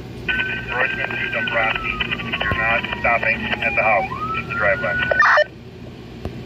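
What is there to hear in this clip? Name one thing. A handheld two-way radio crackles with a garbled, distorted transmission through its small speaker.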